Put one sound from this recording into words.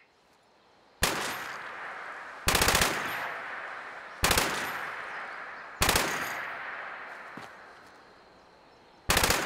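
Gunshots fire in loud single bursts, each followed by a ringing echo.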